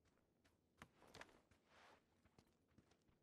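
Clothing and gear rustle during a climb over a ledge.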